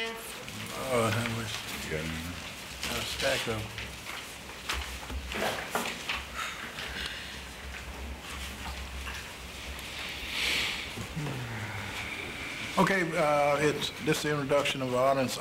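A man speaks calmly through a microphone.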